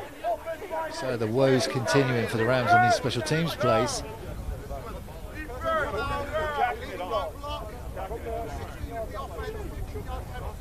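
A middle-aged man announces calmly over a loudspeaker, echoing outdoors.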